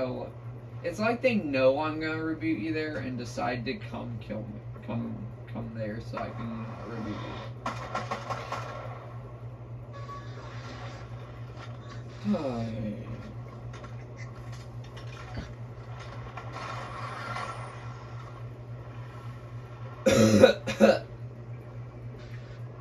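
Video game sound effects play through a television speaker.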